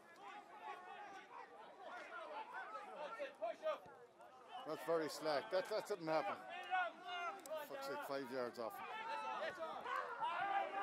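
Men and women in a crowd shout and cheer close by, outdoors.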